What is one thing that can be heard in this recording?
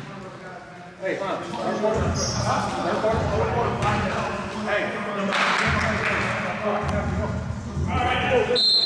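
Several men talk and call out loudly in a large echoing hall.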